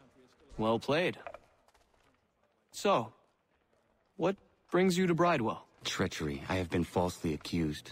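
Wooden game pieces click down onto a wooden board.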